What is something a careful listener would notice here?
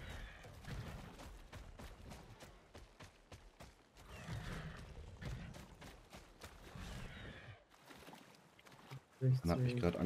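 Footsteps thud quickly on the ground.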